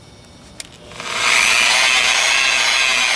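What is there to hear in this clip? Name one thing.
An electric polisher whirs loudly against a car body.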